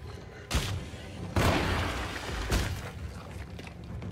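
A monster growls and snarls up close.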